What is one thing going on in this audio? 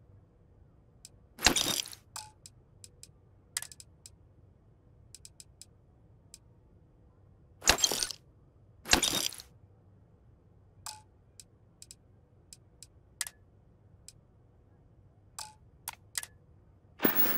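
Soft interface clicks and whooshes sound repeatedly.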